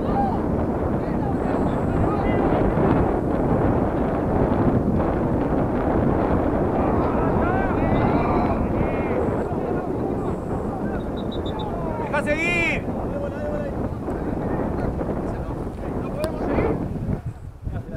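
Wind buffets the microphone outdoors, rumbling steadily.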